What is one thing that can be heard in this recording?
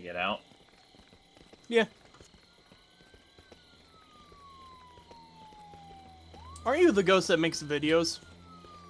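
Footsteps run on a paved road.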